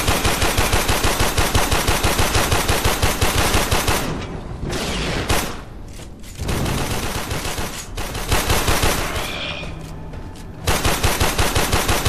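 A rapid-fire gun shoots in fast, steady bursts.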